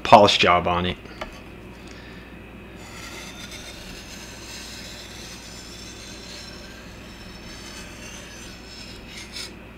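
A knife blade scrapes softly along a wet whetstone.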